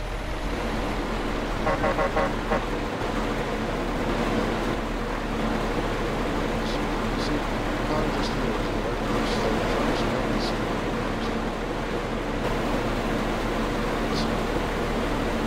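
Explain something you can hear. A combine harvester engine rumbles nearby.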